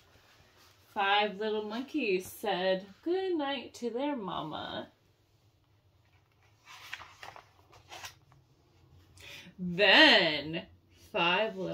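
A woman reads aloud close by in an expressive voice.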